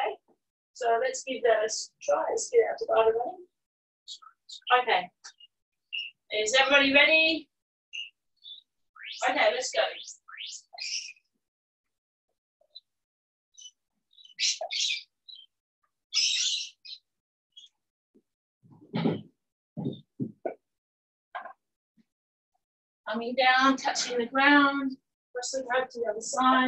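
A woman speaks with animation, close to a microphone.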